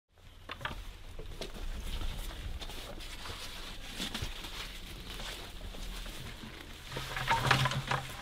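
Dry leaves rustle and crackle as they are handled.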